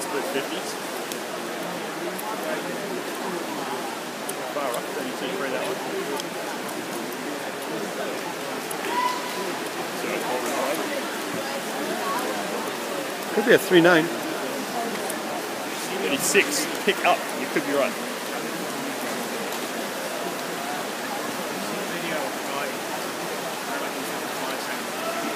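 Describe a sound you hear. Spectators murmur and chatter in an echoing indoor pool hall.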